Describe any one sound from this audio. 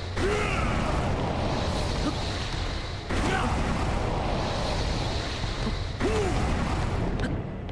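Heavy rumbling bursts of battle noise roar again and again.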